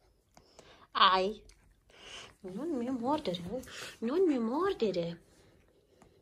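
A small dog whines softly.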